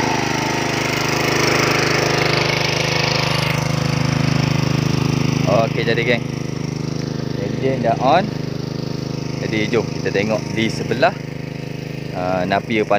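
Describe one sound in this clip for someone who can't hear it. A small petrol water pump engine runs with a steady chugging hum.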